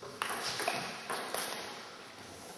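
A table tennis ball clicks back and forth across a table in a large echoing hall.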